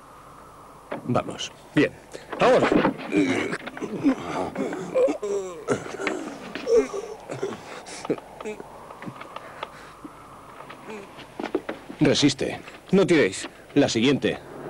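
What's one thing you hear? Several men grunt and strain with effort nearby.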